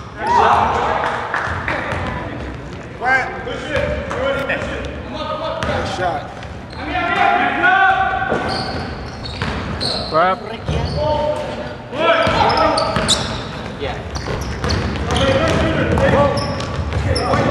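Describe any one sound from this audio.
Men shout and call out in a large echoing gym.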